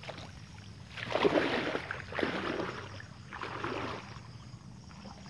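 Water splashes as a man wades through a pond.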